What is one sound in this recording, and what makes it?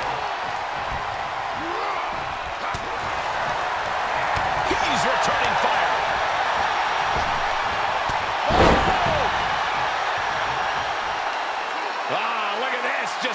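A large crowd cheers and roars in a large arena.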